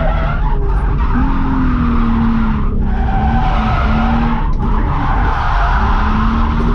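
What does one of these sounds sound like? A car engine roars loudly inside the cabin, rising and dropping as the driver shifts gears.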